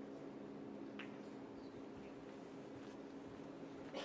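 A ball knocks softly against a cushion.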